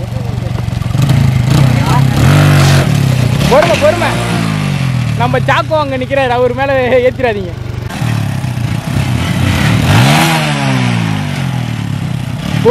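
A motorcycle engine revs up and falls back several times.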